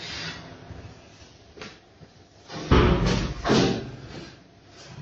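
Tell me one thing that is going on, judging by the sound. A cloth sack flaps and rustles as it is swung about.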